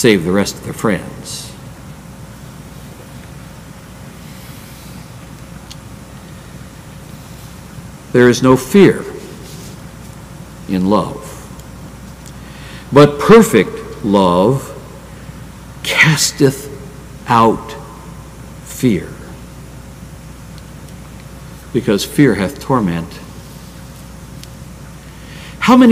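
An elderly man speaks slowly through a microphone, with long pauses.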